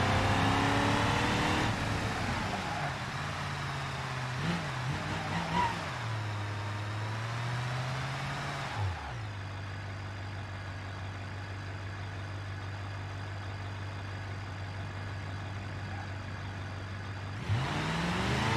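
A pickup truck engine slows down and idles, then revs up again.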